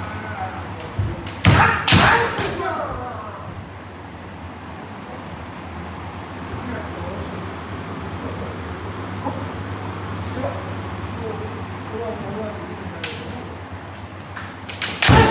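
Bamboo swords clack against each other in an echoing hall.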